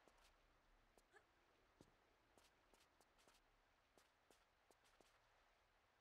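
Footsteps tap quickly on hard ground.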